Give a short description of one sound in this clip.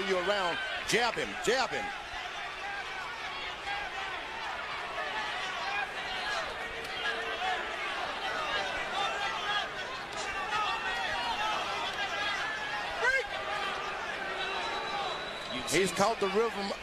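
Gloves thud as punches land.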